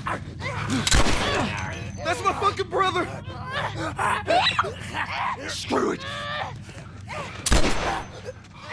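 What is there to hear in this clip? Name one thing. A gun fires sharply twice.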